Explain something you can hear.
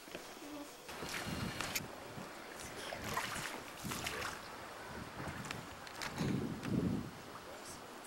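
A young girl talks softly nearby.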